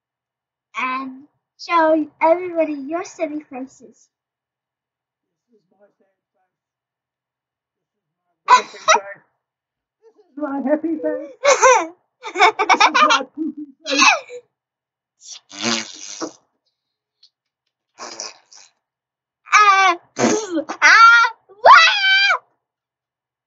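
A young girl talks and squeals playfully close by.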